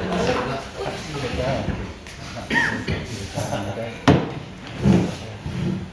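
A plastic chair knocks and scrapes on the floor.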